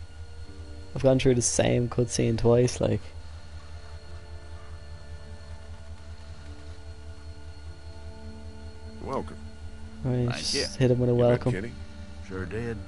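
A man speaks calmly in a deep voice.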